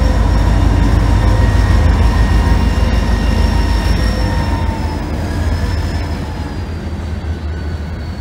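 A diesel locomotive engine rumbles loudly as it passes close by and fades.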